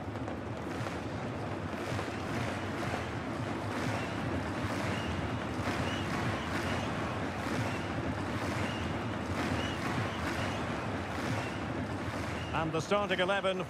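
A large stadium crowd cheers and sings loudly.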